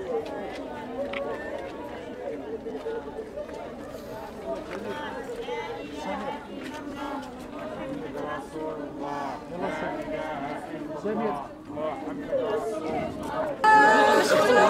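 A crowd of men talk and murmur close by.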